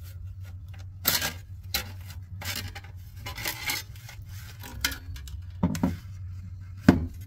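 A metal casing clatters and scrapes as it is opened.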